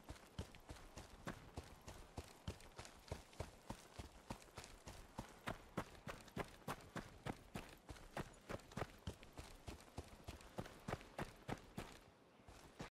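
Footsteps crunch steadily over grass and stones.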